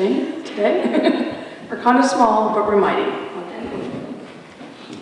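A woman speaks into a microphone in an echoing hall.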